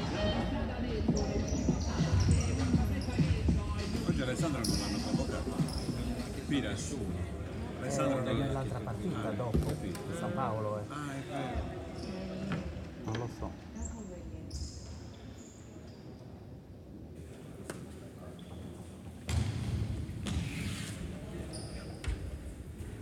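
Players' shoes squeak on a hard court in a large echoing hall.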